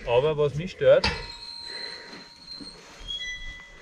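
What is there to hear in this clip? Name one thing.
A metal gate clanks and rings.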